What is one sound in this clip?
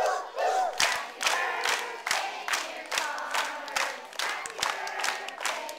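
A woman claps her hands in a steady rhythm.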